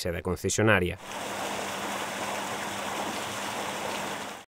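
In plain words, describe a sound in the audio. Rushing water churns and roars steadily.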